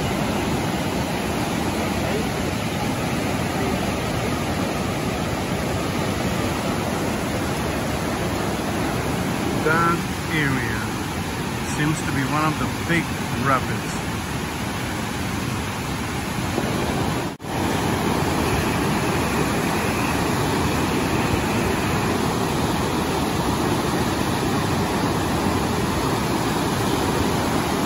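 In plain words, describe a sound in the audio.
Rapids roar and rush loudly outdoors.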